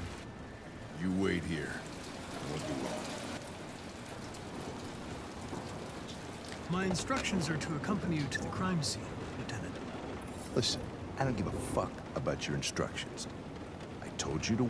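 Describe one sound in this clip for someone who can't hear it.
An older man speaks gruffly up close.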